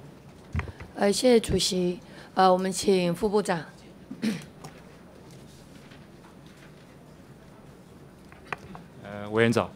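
A woman speaks into a microphone in a calm, formal voice.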